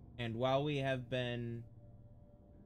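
A young man speaks briefly into a close microphone with animation.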